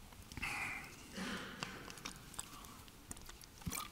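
A man drinks from a plastic bottle, which crinkles.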